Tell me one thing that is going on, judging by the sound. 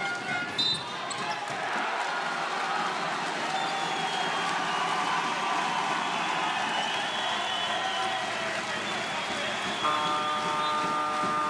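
A large crowd cheers and roars in an echoing hall.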